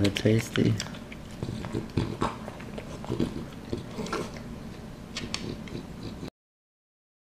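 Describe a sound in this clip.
A dog eats noisily from a bowl, crunching and licking.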